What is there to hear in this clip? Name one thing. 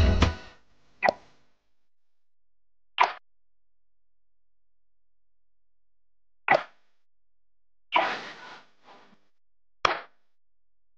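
Short game menu chimes sound as buttons are tapped.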